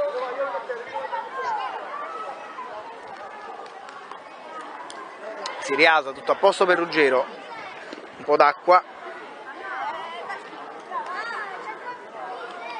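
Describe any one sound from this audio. Children and adults chatter in the distance outdoors.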